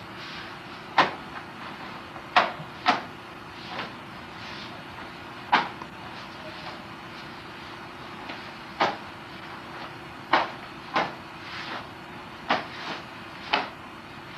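A wooden staff whooshes sharply through the air.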